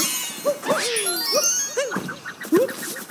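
A bright sparkling chime rings out.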